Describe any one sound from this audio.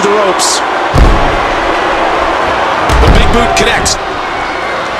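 Heavy thuds land on a wrestling ring mat.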